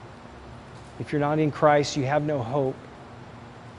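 A middle-aged man speaks calmly and earnestly, close to the microphone.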